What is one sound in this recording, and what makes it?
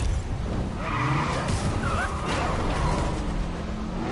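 Metal scrapes against the road as a car crashes.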